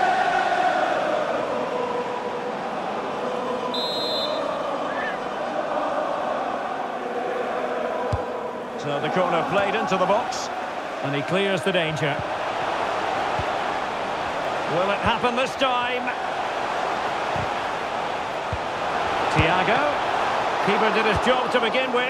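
A stadium crowd roars and chants throughout.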